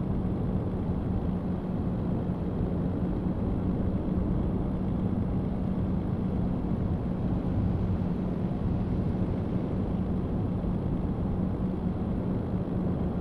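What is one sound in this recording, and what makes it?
A truck engine hums steadily while driving along a road.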